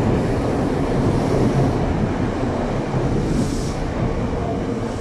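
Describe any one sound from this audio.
A subway train rumbles loudly past on the rails, echoing in a tunnel.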